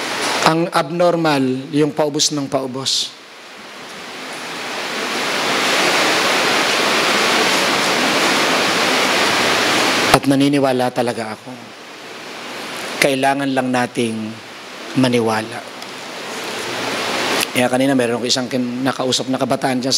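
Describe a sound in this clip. A man speaks calmly through a microphone and loudspeakers, with pauses.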